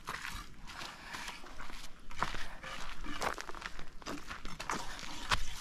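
Bare feet tread on dry, gritty ground.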